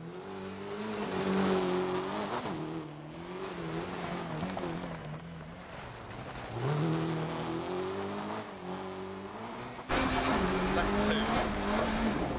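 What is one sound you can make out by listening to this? A rally car engine revs hard and changes pitch as the car races along.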